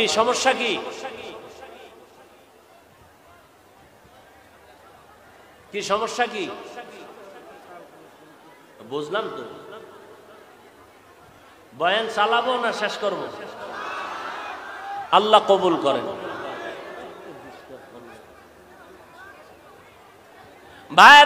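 A man preaches into a microphone over a loudspeaker, in bursts with long pauses.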